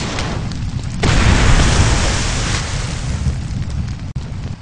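Water splashes up from a blast.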